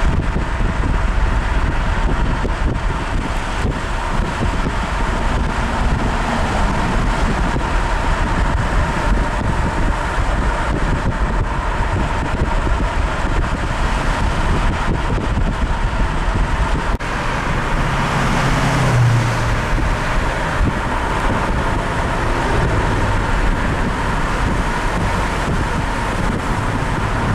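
A car drives along a road, with road and wind noise rumbling from inside the car.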